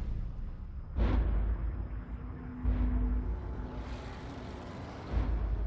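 Deep booming thuds hit.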